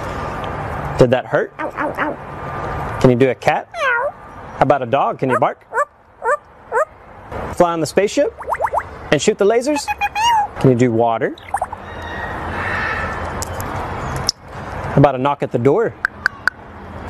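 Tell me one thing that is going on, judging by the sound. A parrot whistles, squawks and mimics sounds close into a microphone.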